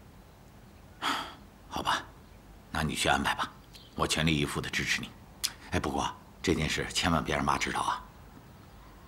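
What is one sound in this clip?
A middle-aged man speaks quietly and earnestly close by.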